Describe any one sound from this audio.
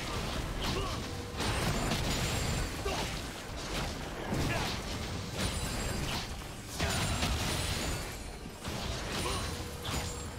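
Magic blasts and blows crackle and thud.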